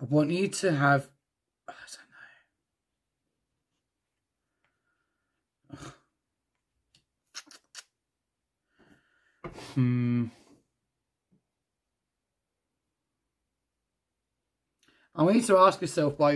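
Cards slide and tap softly on a wooden table.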